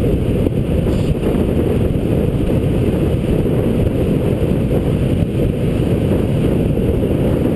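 Wind buffets the microphone on a fast downhill bicycle ride.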